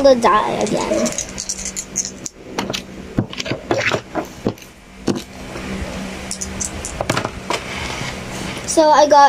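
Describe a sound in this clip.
Small plastic toys click and tap on a hard surface.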